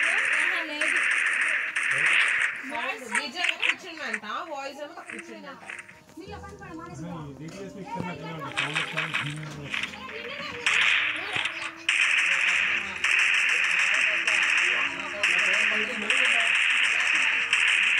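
Rapid gunfire bursts loudly in quick rounds.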